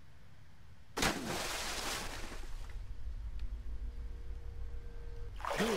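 Debris crashes and scatters with a loud rush.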